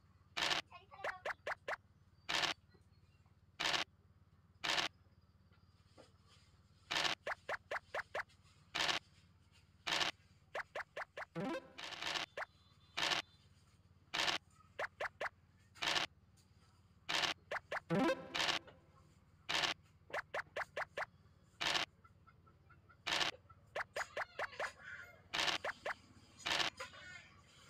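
Game pieces hop across the board with quick, even ticks.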